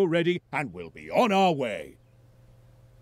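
A man speaks cheerfully in a cartoon voice.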